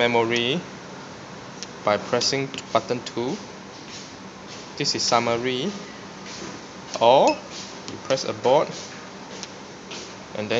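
A finger presses keypad buttons with soft clicks.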